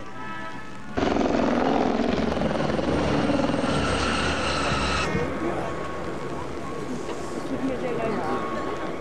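Small propeller planes roar loudly overhead.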